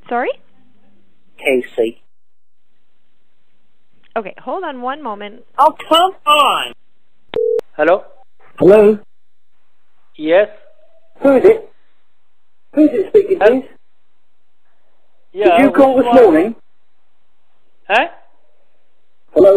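A man speaks close by in short bursts, with pauses.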